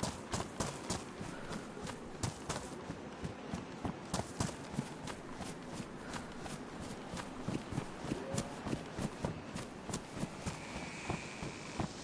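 Footsteps run quickly through grass and over gravel.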